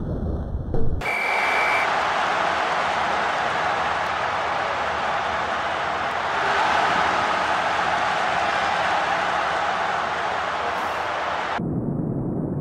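A stadium crowd cheers loudly and steadily.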